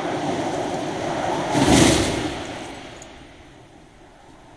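Wind rushes loudly past a falling skydiver and fades away.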